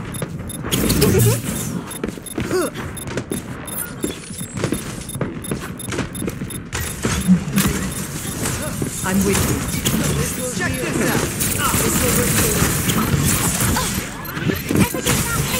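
Game pistols fire in rapid bursts.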